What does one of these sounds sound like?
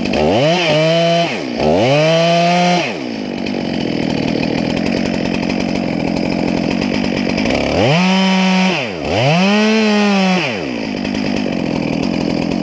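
A chainsaw engine revs up to a high whine and drops back to a rattling idle, over and over.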